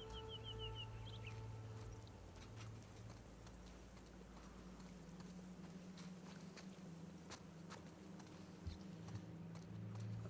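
Footsteps crunch over grass and debris.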